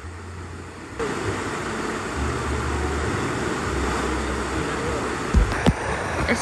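Water splashes loudly as a rider lands in a pool.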